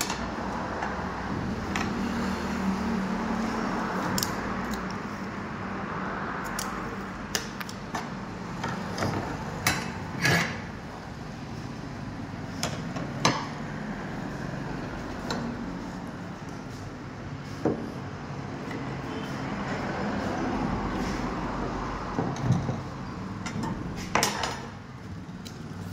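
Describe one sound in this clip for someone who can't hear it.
Steel bars clink and knock against a metal bending plate.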